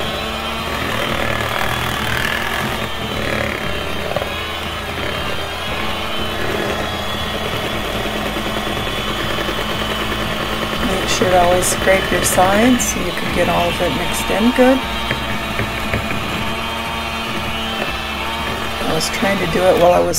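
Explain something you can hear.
An electric hand mixer whirs steadily, beating batter in a bowl.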